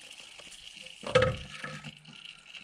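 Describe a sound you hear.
A metal filter clunks as it twists loose by hand.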